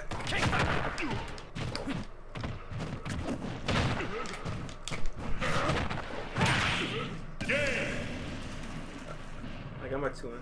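Video game fighting sound effects hit and blast.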